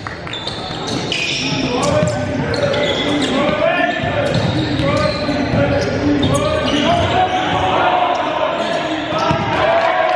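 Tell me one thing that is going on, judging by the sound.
Young men shout to each other in an echoing gym.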